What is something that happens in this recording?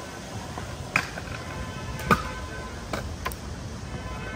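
Scooter wheels clack over joints in the pavement.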